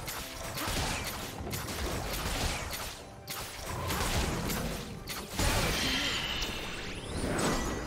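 Game spells crackle and burst during a fight.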